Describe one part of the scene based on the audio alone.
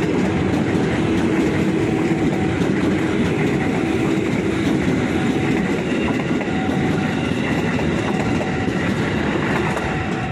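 A passenger train rumbles past close by, its wheels clattering on the rails.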